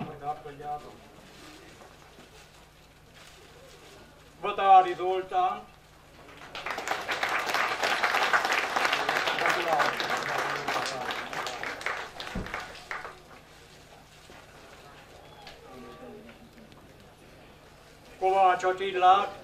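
A man speaks through a loudspeaker in short bursts.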